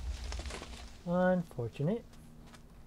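A young man speaks briefly into a microphone with animation.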